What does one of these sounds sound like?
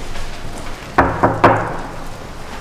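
Knuckles knock on a wooden door.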